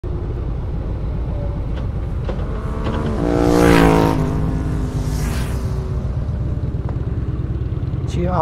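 Wind roars steadily past a riding motorcycle.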